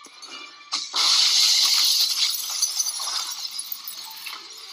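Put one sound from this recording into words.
Glass shatters loudly and shards scatter across a floor.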